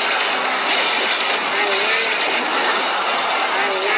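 An electric zap crackles in a video game.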